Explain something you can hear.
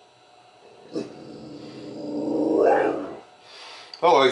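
A dog whines and howls.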